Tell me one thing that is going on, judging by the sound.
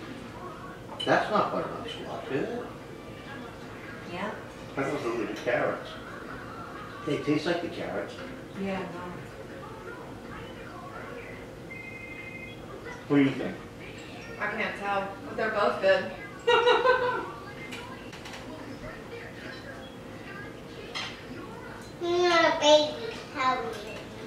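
A young girl talks and chatters.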